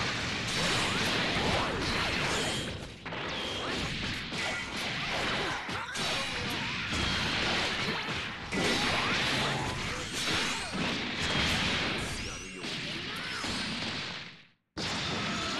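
Energy blasts whoosh and explode loudly.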